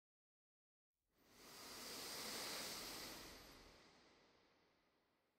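Heavy stage curtains swish closed.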